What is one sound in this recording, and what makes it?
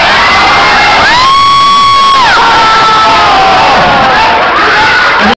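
An audience cheers and shouts loudly.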